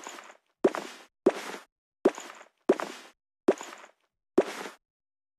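A cartoon sound effect pops in short, sudden bursts about every second.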